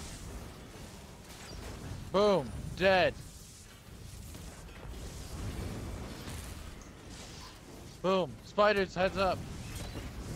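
Fiery blasts burst and roar.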